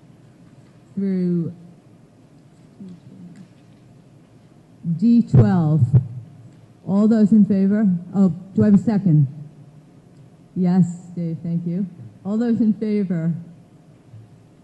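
A man speaks into a microphone in short phrases, heard in a large room.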